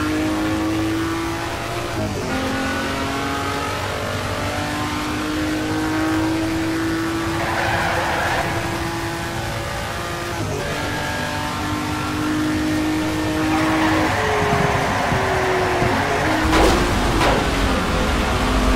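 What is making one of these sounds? A car engine revs high, climbing and dropping in pitch as the gears change.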